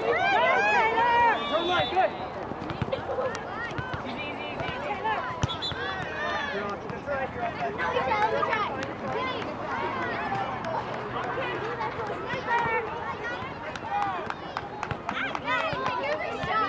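Girls and adults shout and cheer from a distance outdoors.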